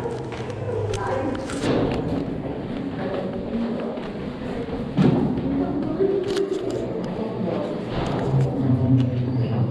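Footsteps shuffle along a hard floor in a narrow echoing passage.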